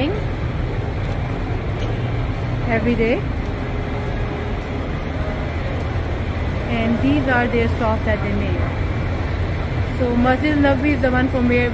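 An engine hums steadily and low.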